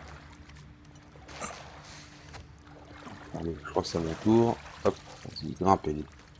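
Water splashes as a person wades through it.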